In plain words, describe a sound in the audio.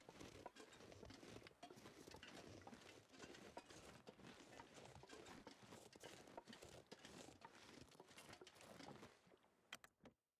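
Footsteps crunch through snow.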